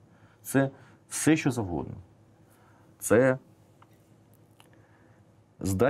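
A middle-aged man speaks calmly and thoughtfully into a close microphone, in short bursts with pauses.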